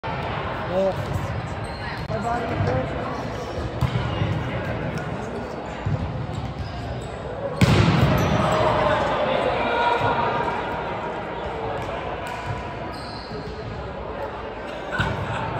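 Men and women talk and call out across a large echoing hall.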